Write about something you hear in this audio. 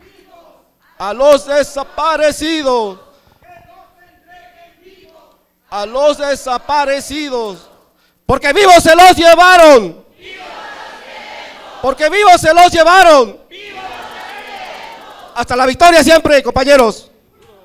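A large crowd calls out and cheers in an echoing hall.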